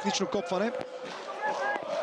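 A football thuds into a goal net.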